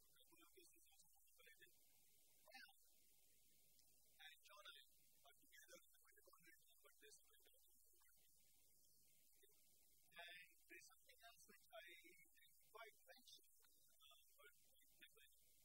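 A man lectures calmly at a moderate distance.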